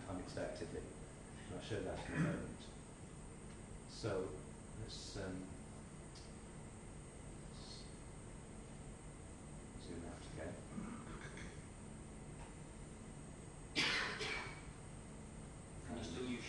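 A man speaks calmly in a large echoing room.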